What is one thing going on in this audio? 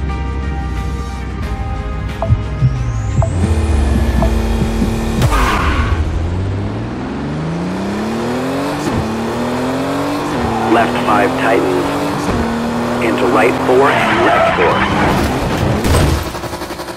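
A rally car engine idles and then revs hard as the car accelerates through the gears.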